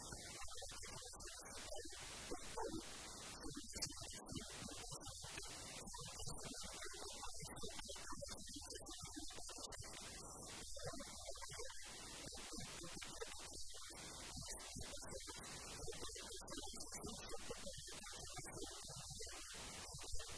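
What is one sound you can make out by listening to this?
A middle-aged man speaks calmly into a handheld microphone.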